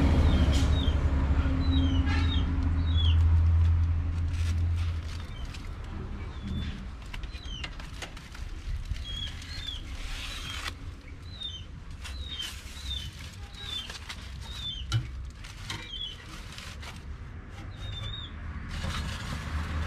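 Aluminium foil crinkles as it is handled.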